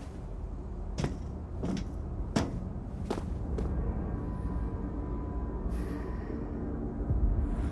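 Boots thud and scuff on cobblestones.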